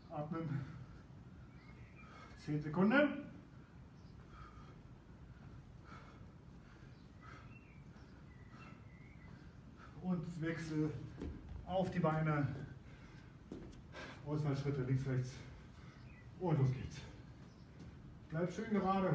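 A middle-aged man talks in an energetic coaching tone.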